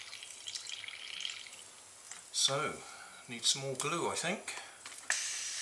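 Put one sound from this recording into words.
Water sloshes and splashes in a metal pot.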